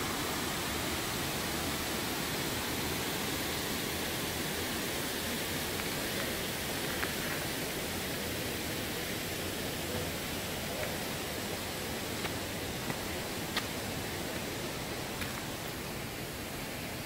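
Wind blows steadily through the trees outdoors.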